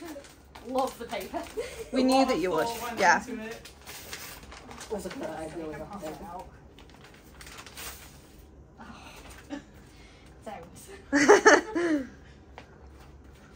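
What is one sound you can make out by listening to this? A plastic bag and paper rustle in a woman's hands.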